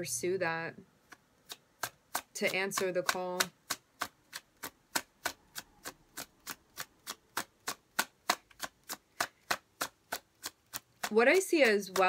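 Cards are shuffled, with quick soft slaps.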